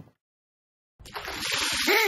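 A cartoon dog laughs.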